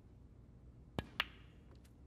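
A cue strikes a snooker ball with a sharp click.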